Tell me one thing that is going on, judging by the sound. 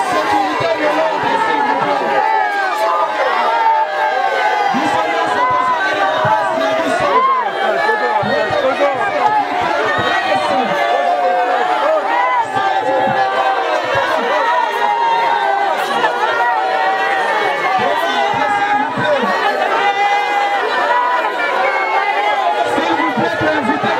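A crowd of people shouts and talks all around.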